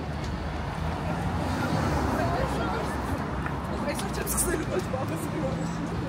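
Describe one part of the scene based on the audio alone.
Women chat as they walk by nearby.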